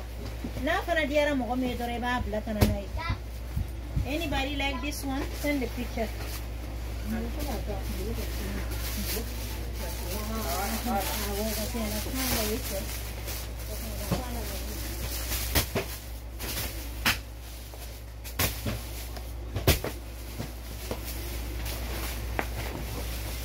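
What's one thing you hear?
Stiff fabric rustles and crackles as it is handled.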